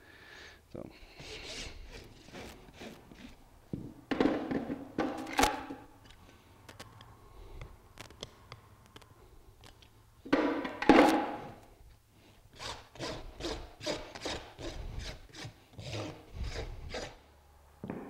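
A rasp files rhythmically against a horse's hoof.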